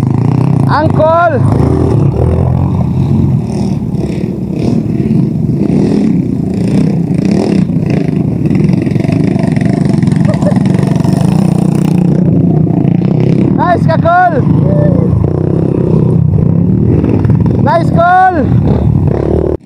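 A dirt bike engine revs up sharply several times.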